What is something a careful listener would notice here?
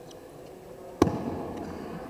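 A bat sharply strikes a ball.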